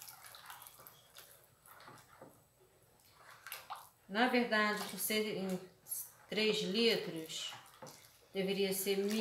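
Liquid pours in a thin stream into a bowl of liquid.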